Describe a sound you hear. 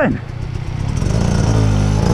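A dirt bike engine revs nearby.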